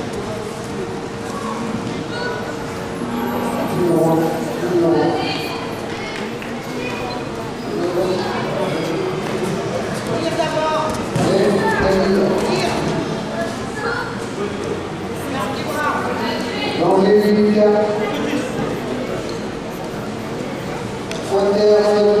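Children and adults call out and shout encouragement in a large echoing hall.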